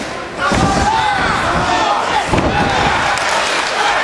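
Bodies thud onto a padded mat.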